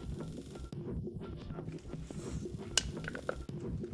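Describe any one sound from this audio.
A drink can pops open with a hiss.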